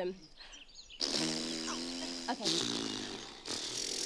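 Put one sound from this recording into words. A young woman sings close by.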